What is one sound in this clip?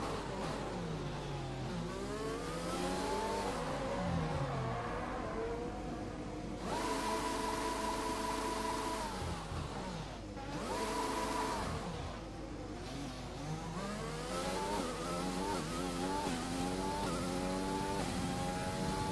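A racing car engine whines loudly, revving up through the gears and dropping as it slows.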